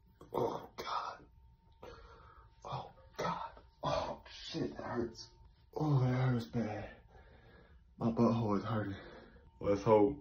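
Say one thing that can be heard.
A young man groans and strains loudly.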